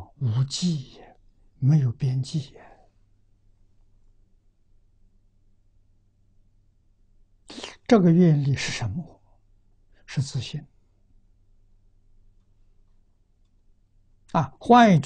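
An elderly man speaks calmly into a close microphone, with long pauses.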